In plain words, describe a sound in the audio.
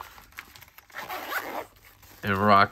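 A zipper rasps open.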